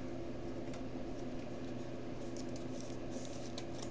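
Plastic card sleeves rustle as a card is slid in.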